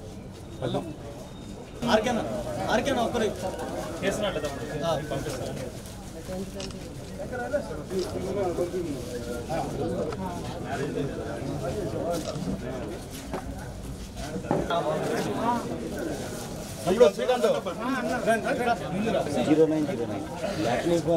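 A crowd of men chatters and talks loudly close by.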